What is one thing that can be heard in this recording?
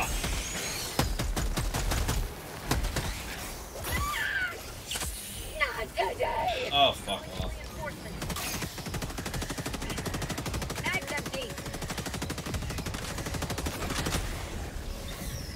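Rapid gunfire rattles.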